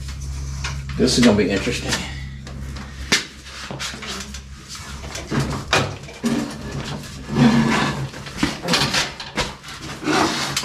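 Heavy metal clanks and thuds nearby.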